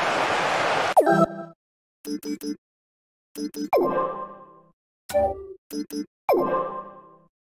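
Short electronic menu tones beep in quick bursts.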